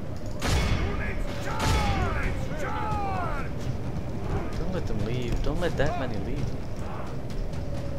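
A large battle clashes in the distance, with a low rumble of many fighters.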